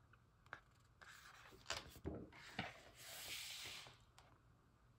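Stiff paper pages rustle and slide as they are turned.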